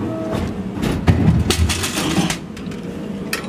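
A plastic bottle drops and thuds inside a vending machine.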